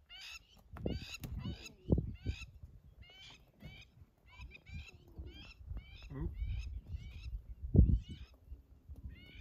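Lion cubs mew with high, repeated calls.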